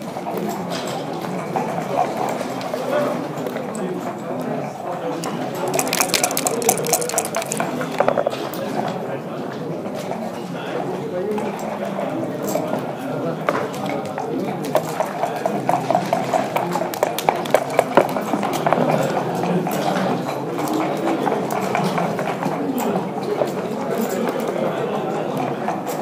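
Checkers click against a game board.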